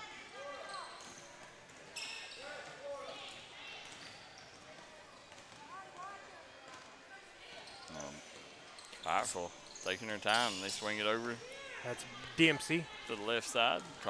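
A basketball bounces on a hardwood floor in an echoing gym.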